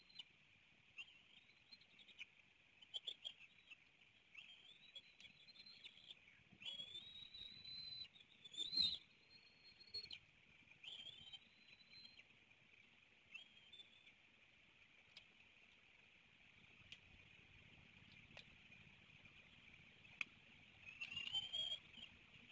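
Young eagles give high, thin cheeping calls in short bursts.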